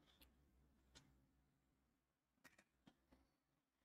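A plastic ruler taps down on paper.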